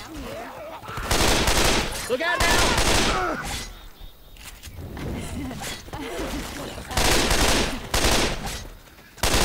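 An assault rifle fires rapid bursts at close range.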